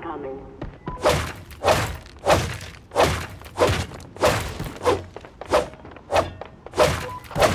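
A pickaxe strikes wood in loud, repeated blows.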